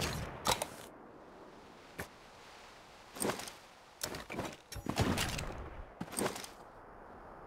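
Interface clicks and item rustles sound as gear is sorted.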